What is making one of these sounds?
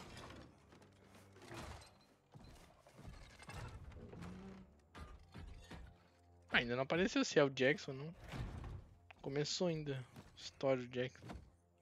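Bodies scuffle and thud in a struggle.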